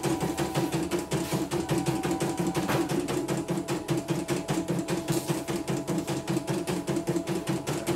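A sewing machine motor hums steadily.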